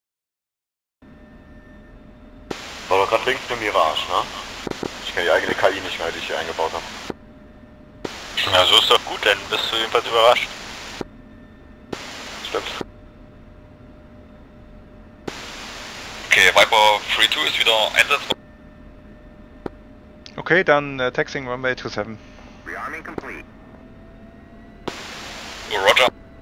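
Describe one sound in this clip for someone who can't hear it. A jet engine idles with a steady low whine.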